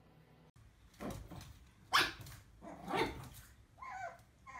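A small dog's claws patter on a wooden floor.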